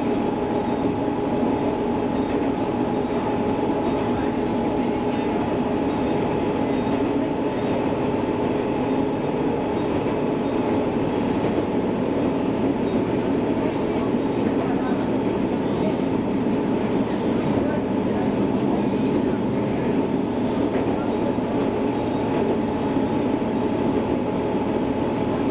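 A train's motor hums with a steady tone.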